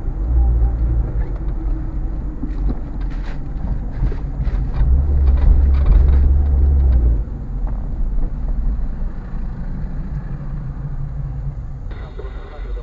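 A car engine hums with a low road rumble as the car drives along a street.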